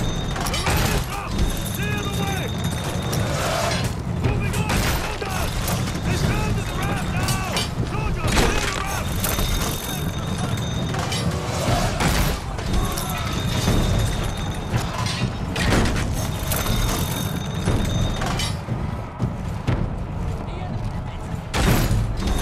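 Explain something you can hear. A heavy crossbow fires with a sharp thwack.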